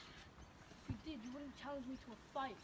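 A young boy talks loudly nearby.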